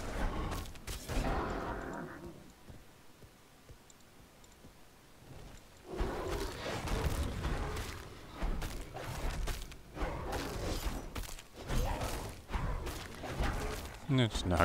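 Heavy weapon blows thud and clang in a fight.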